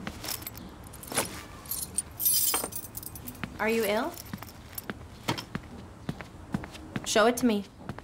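Footsteps cross a room.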